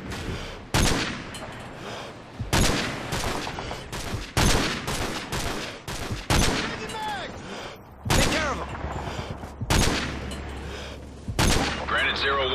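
Rifle shots crack out again and again, each followed by a rolling echo.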